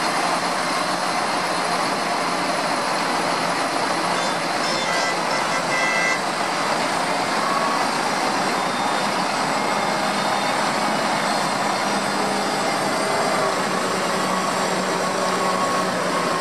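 Tractor engines rumble steadily close by.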